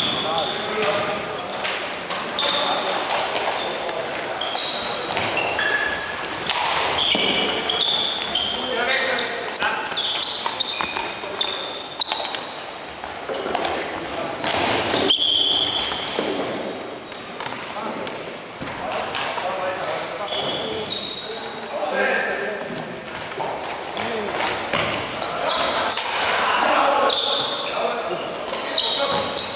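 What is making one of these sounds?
Plastic sticks clack against a ball and each other.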